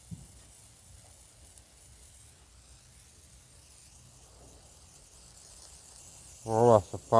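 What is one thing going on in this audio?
A flare hisses and sputters as it burns.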